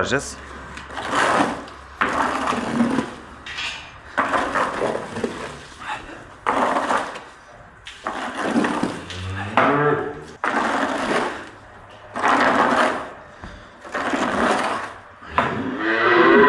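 A scraper scrapes wet manure across a concrete floor in repeated strokes.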